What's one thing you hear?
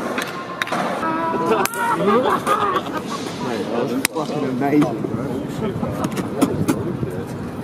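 Young men cheer and laugh nearby.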